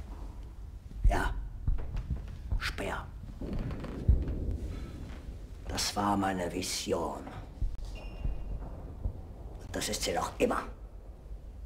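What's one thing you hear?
A middle-aged man speaks in a stern, raised voice.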